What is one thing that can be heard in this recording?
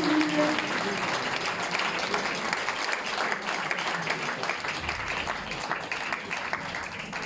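A crowd claps steadily.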